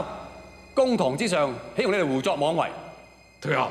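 A man speaks forcefully and loudly, close by.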